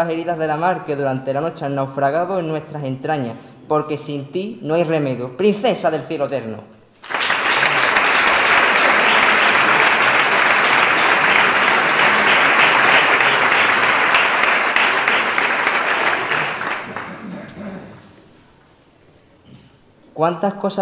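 A young man reads aloud calmly into a microphone.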